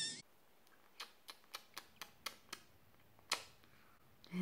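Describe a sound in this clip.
A woman makes soft kissing smacks close by.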